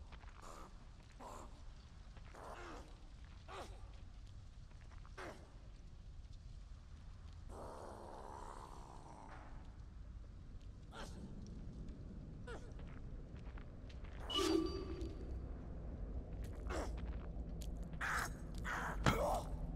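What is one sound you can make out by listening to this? Soft footsteps creep slowly over grass and earth.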